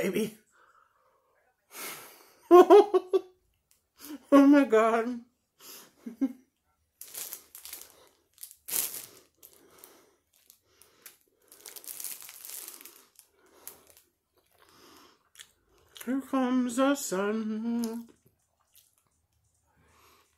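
A woman bites into bread and chews noisily.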